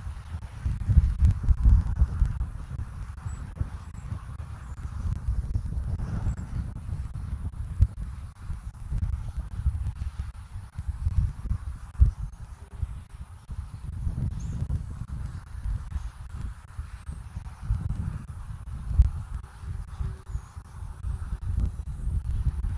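Pine needles rustle in the wind.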